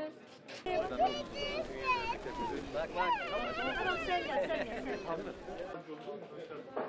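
A crowd chatters loudly outdoors.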